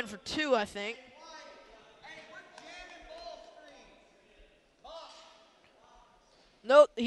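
Players and spectators call out in a large echoing gym.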